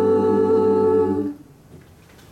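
A group of young singers sings a sustained chord together through microphones.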